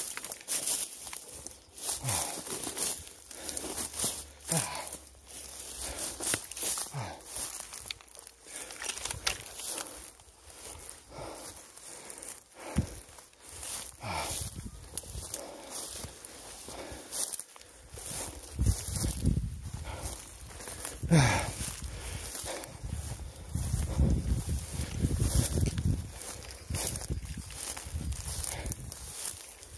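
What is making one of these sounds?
Wind gusts outdoors, buffeting the microphone.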